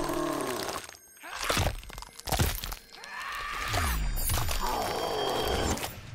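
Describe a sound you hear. A man screams in pain.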